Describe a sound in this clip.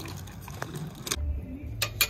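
A bicycle rolls along a pavement.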